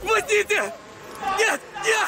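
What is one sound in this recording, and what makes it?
A young man groans in pain.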